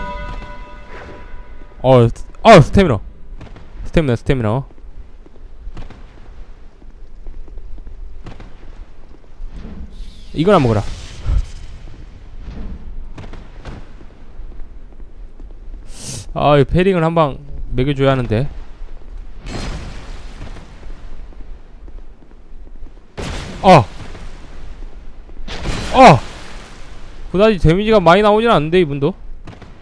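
Heavy weapons swing and strike in a fight.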